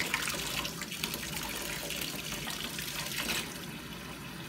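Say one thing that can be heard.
Salt crystals pour and patter into water.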